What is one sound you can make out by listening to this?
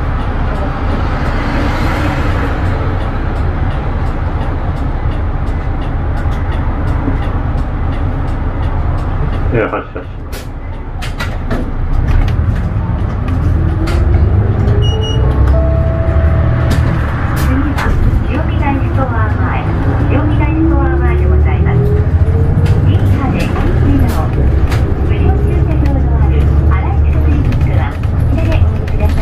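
A bus engine rumbles low and steadily, growing louder as the bus pulls away and speeds up.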